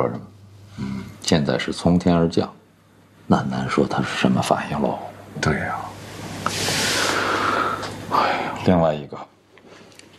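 A second middle-aged man speaks quietly in reply.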